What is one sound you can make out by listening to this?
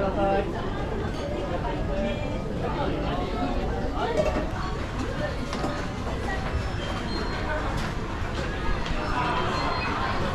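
A crowd of people chatters in a busy indoor space.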